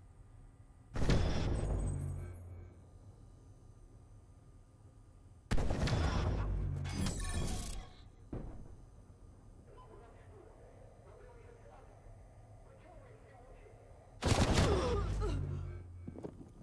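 A crossbow fires with a loud, sudden thump.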